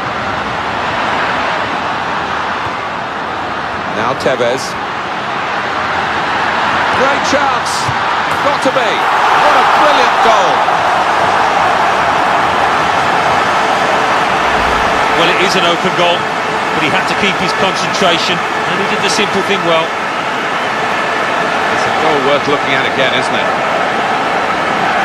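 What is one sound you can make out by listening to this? A large stadium crowd roars steadily and swells into loud cheering.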